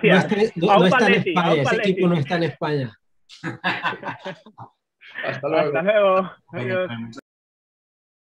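A man speaks cheerfully over an online call.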